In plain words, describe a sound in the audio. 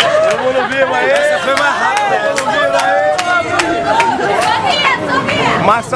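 Hands clap in a steady rhythm.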